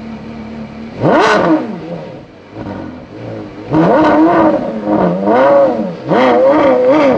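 A Porsche Carrera GT's V10 engine revs sharply in short blips.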